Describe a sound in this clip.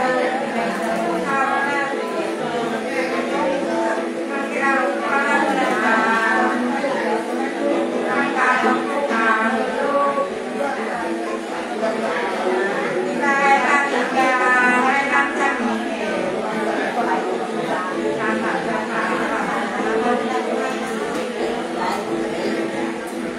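An elderly woman sings in a wavering voice close by.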